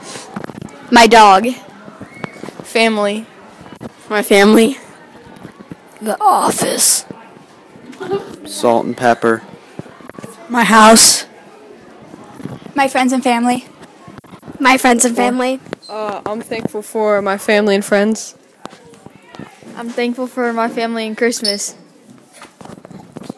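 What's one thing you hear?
Young girls speak in turn into a handheld microphone, close by.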